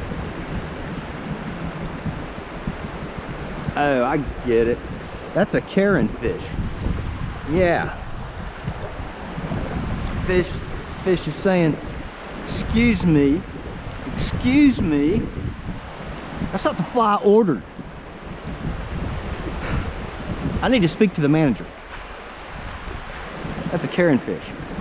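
A shallow stream ripples and gurgles over rocks outdoors.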